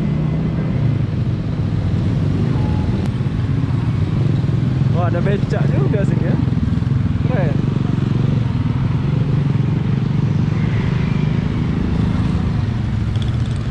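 Wind rushes past as the motorbike rides.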